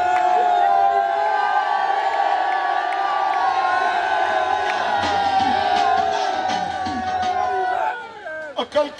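A crowd chants loudly together.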